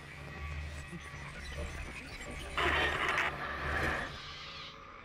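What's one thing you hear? Static hisses and crackles loudly.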